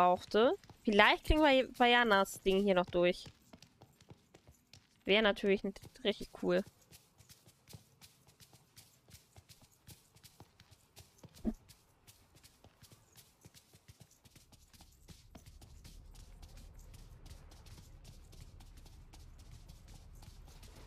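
Quick light footsteps patter as characters run.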